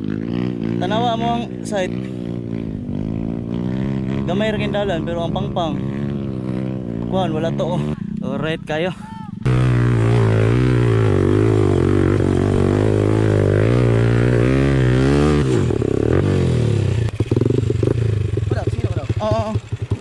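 A dirt bike engine runs close by, idling and revving.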